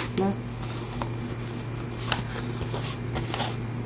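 Foil insulation crinkles and rustles as hands handle it.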